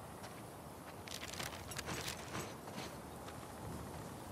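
Paper crinkles as a map is folded.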